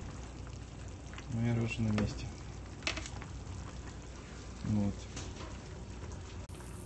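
Liquid bubbles and sizzles steadily in a pan.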